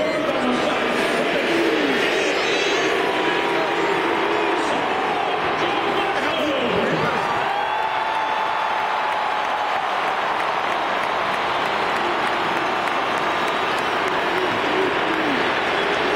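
A huge crowd roars and cheers loudly in a vast open stadium.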